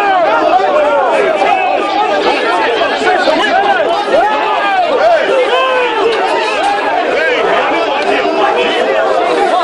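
A crowd of men shouts and jeers loudly, close by.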